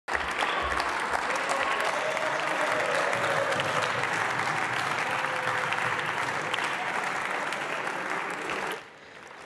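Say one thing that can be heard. An audience applauds loudly in a large echoing hall, then the applause stops abruptly.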